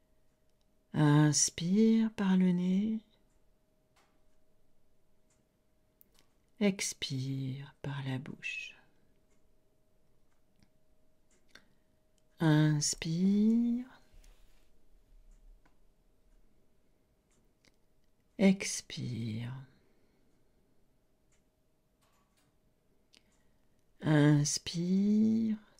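A middle-aged woman speaks calmly into a close microphone in short bursts with pauses.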